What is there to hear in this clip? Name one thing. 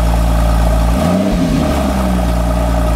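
A car engine revs briefly.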